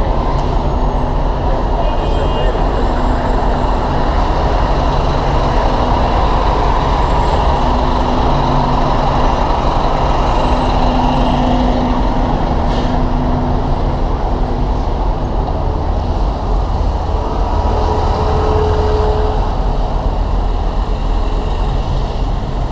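Bus and truck engines idle and rumble close by in heavy traffic.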